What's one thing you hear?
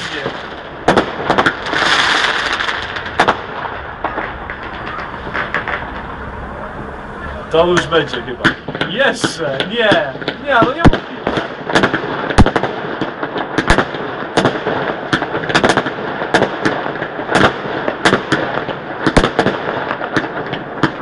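Fireworks bang and crackle in the open air.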